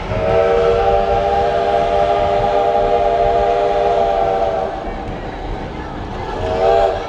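A train rumbles and clatters along the track.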